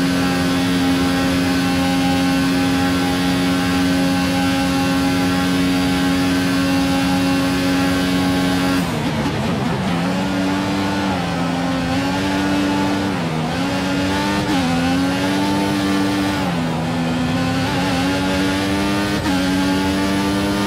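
A racing car engine screams at high revs, drops sharply under braking and revs up again through the gears.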